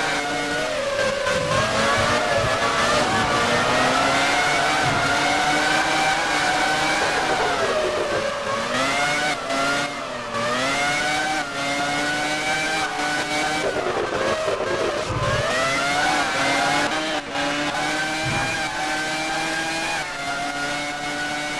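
A racing car engine screams at high revs, rising and falling as it shifts gears.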